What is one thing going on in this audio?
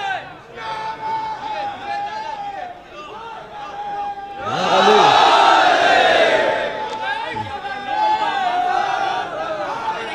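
A young man chants loudly into a microphone, heard through loudspeakers.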